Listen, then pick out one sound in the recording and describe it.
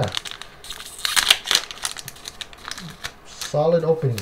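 A foil card pack crinkles as it is handled.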